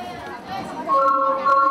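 Wind instruments start playing steady notes together.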